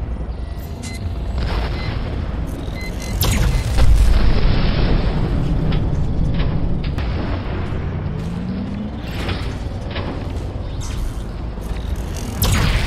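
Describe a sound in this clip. A tank cannon fires with sharp booms.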